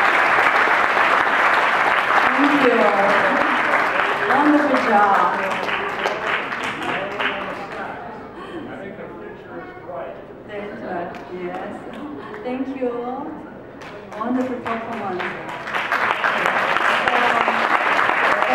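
A crowd applauds loudly in a hall.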